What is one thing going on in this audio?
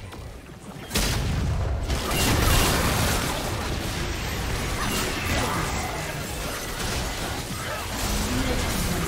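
Game spells blast and crackle in a busy fight.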